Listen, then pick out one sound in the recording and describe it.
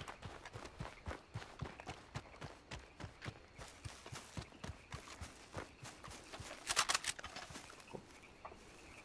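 Footsteps crunch through undergrowth outdoors.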